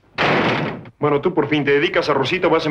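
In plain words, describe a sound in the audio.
A man speaks clearly and with animation.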